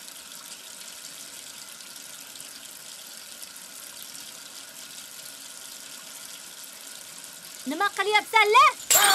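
Water runs from a tap.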